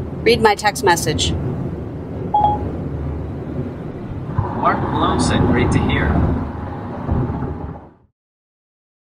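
A car hums and rumbles steadily as it drives along a road.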